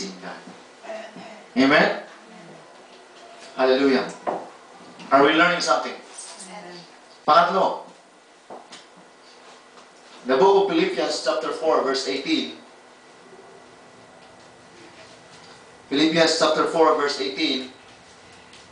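A man speaks steadily into a microphone, heard through a loudspeaker in a room with echo.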